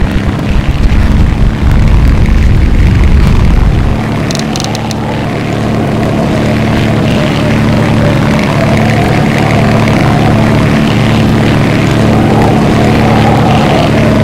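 A propeller engine drones steadily.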